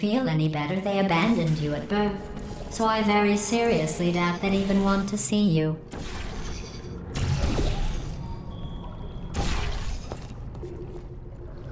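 A game's portal gun fires with short electric zaps.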